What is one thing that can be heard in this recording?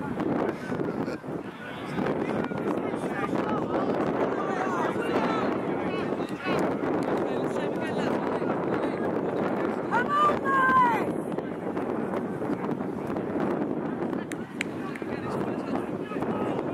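A crowd of spectators talks and calls out outdoors.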